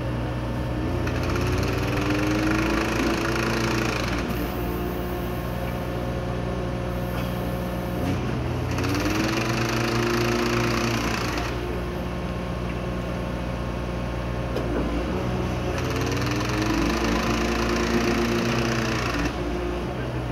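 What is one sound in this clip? Hydraulics on a track machine whine and hiss in repeated bursts.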